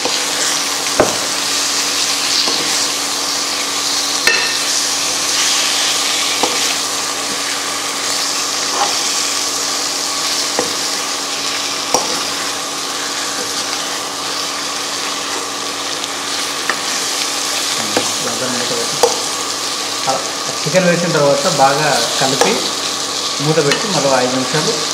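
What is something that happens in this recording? A metal spatula scrapes and clanks against the pot.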